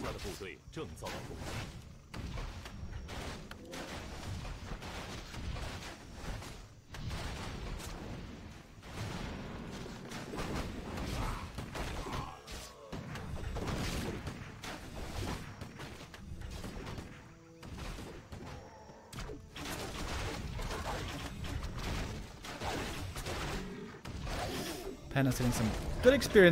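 A young man commentates with animation through a microphone.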